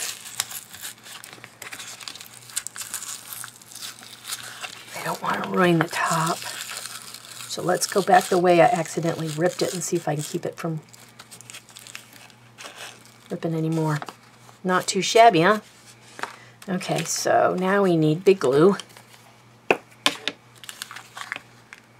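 Paper rustles and crinkles as hands fold and handle it.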